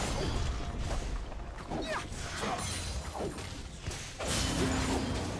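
Game spells whoosh and hits clash in a busy fantasy battle.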